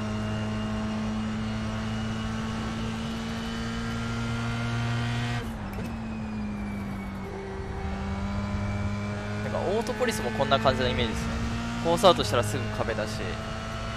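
A racing car engine drones steadily, dropping in pitch as the driver shifts down and rising again later.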